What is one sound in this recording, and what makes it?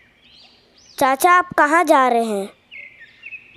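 A boy speaks with animation, close by.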